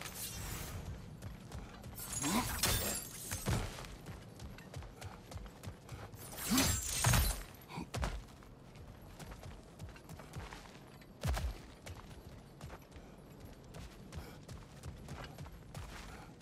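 Heavy footsteps crunch over rocky ground.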